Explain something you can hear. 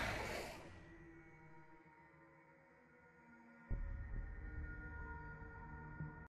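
Music plays from a game's menu.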